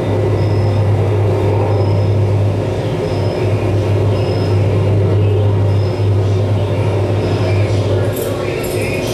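A low electronic drone hums steadily, then cuts off.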